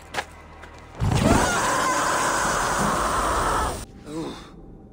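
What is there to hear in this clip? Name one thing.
A burst of fire roars loudly.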